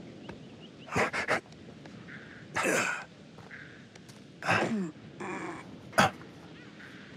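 Shoes thud and scrape against a wall.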